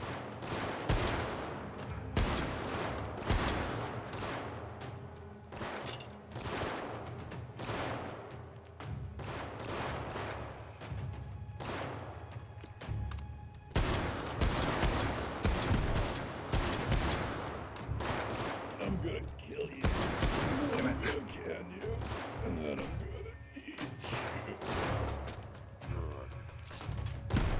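Gunshots fire in quick bursts, each with a sharp crack and a short echo.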